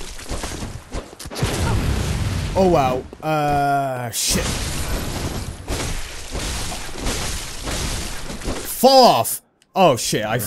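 Heavy blades slash and strike in a fierce fight.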